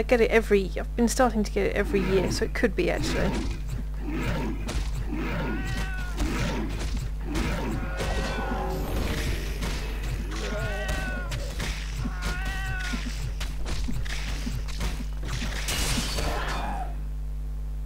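Weapons clash and thud in a close fight.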